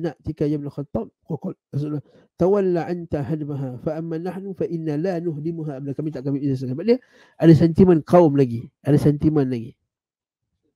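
A man speaks calmly through a microphone, as if on an online call.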